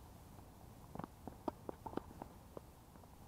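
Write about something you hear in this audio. A tennis ball bounces several times on a hard court.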